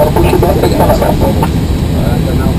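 A young man speaks briefly nearby.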